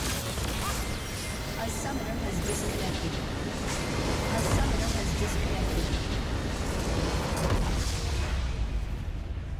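Game spell effects crash and burst loudly.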